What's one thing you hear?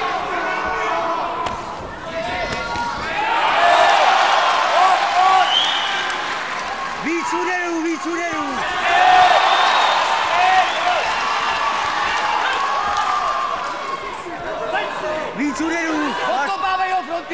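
Kickboxers' gloves thud against each other and on bodies.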